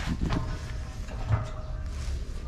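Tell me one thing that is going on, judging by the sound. A metal sheet knocks down onto a rubber tyre.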